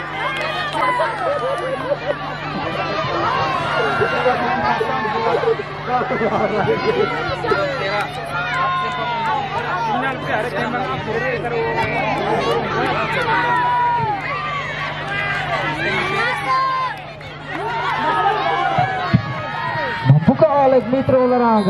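A large crowd outdoors shouts and cheers excitedly.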